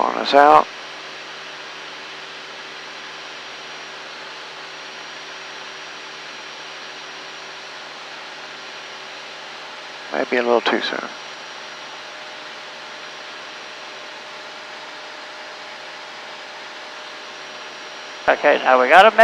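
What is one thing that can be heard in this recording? A man speaks briefly over a headset intercom.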